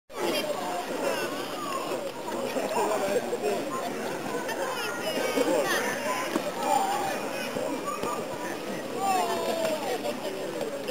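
A crowd of children and adults chatter and shout at a distance outdoors.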